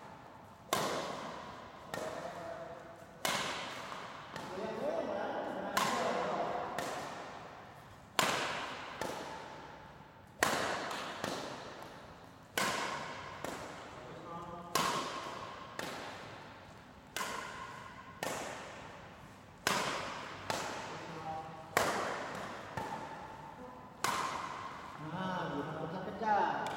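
A shuttlecock is struck sharply by a racket again and again, echoing around a large hall.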